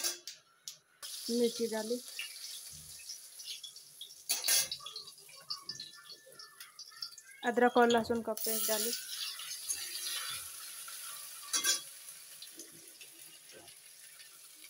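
Oil sizzles and crackles in a hot wok.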